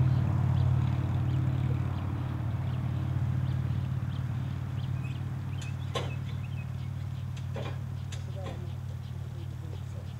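Metal clanks as people climb onto a trailer.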